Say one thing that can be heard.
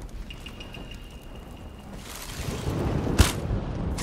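A flame crackles and hisses.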